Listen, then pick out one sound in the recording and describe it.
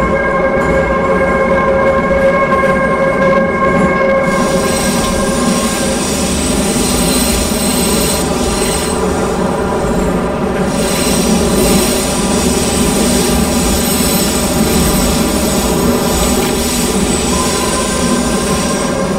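Wheels rumble and clatter on the rails.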